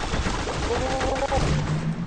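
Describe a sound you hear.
A small cartoon explosion bursts.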